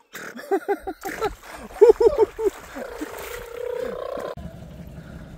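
Water splashes as a boy kicks through it.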